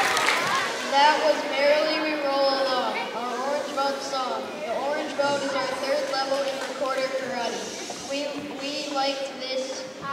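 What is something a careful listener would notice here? A young boy reads out through a microphone.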